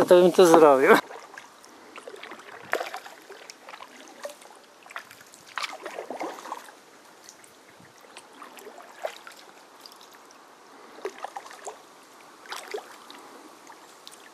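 Water splashes softly and drips now and then.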